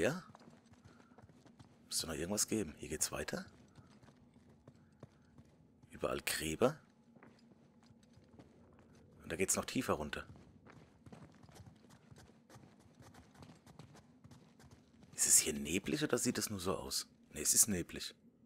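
Footsteps scuff slowly on a stone floor.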